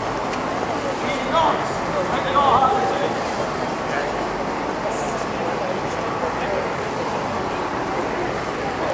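A crowd murmurs and chatters nearby outdoors.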